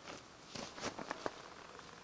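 A metal grill lid clanks as it is handled.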